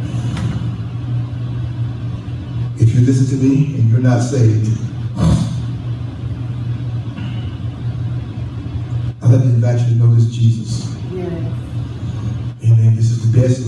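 A man preaches with animation through a microphone and loudspeakers in an echoing hall.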